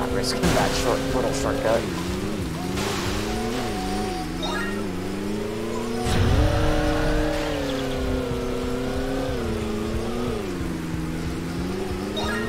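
A jet ski engine whines steadily, its pitch rising and falling with speed.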